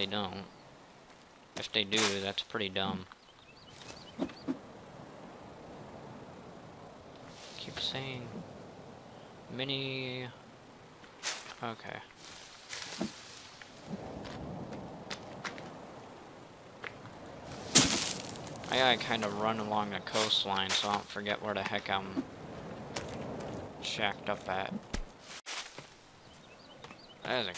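Footsteps rustle through grass and leafy undergrowth.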